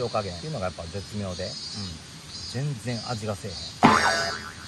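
A young man speaks casually and close by.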